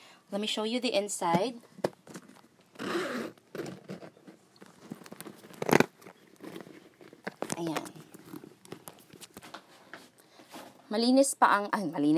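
A leather handbag rustles and creaks as hands handle it.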